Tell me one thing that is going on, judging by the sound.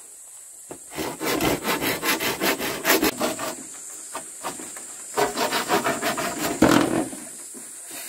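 A knife chops rapidly into bamboo.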